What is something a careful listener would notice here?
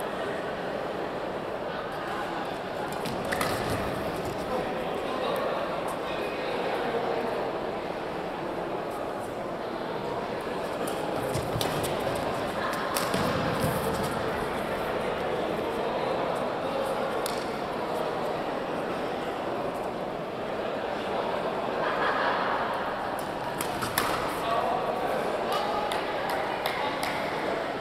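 Rackets hit a shuttlecock with sharp pops in a large echoing hall.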